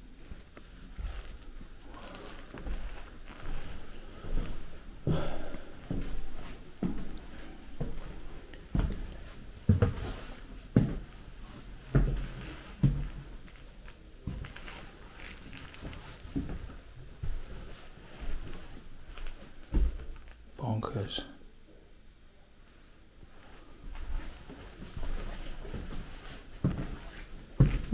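Footsteps thud on creaking wooden floorboards.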